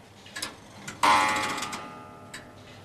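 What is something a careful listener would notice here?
A clock chimes once, ringing and slowly fading.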